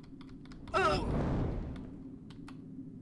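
A magic spell crackles and fizzes.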